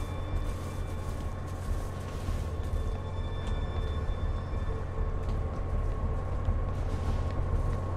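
Footsteps clang on metal stairs and grating.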